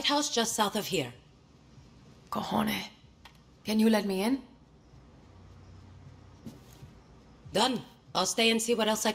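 A woman speaks calmly, close up, in short lines with pauses.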